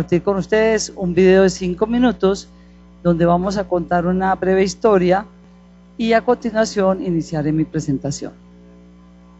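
A woman speaks with animation into a microphone, amplified through loudspeakers in a large hall.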